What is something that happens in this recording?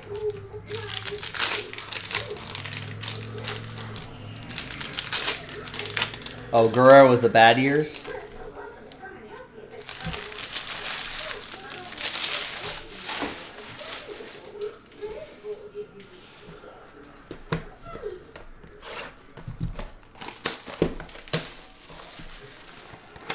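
Foil card wrappers crinkle and tear.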